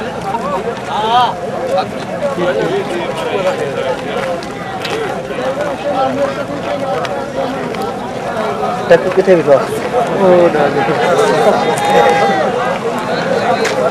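A large crowd of men talks and calls out outdoors, their voices overlapping.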